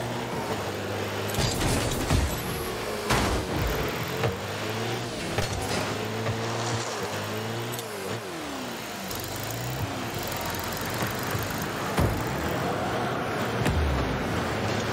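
A game car engine hums and roars steadily.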